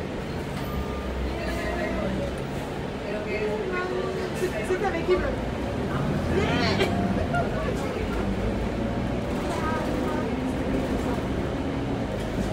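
Loose fittings inside a bus rattle and creak as it moves.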